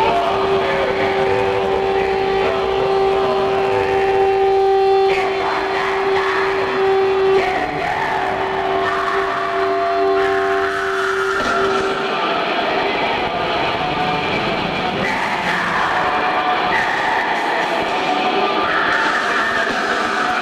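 A rock band plays loudly in a large hall.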